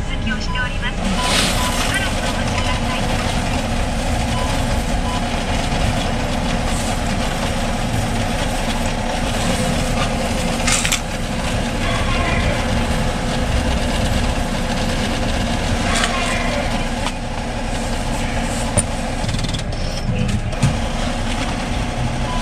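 A machine whirs steadily while it processes.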